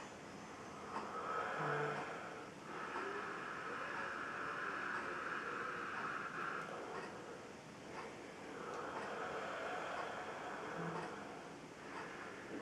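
A young man speaks quietly and evenly, close by.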